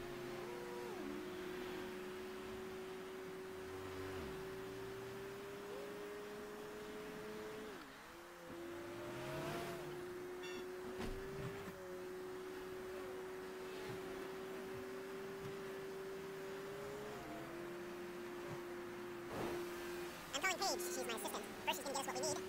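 A car engine hums steadily, dropping in pitch now and then as it shifts gear.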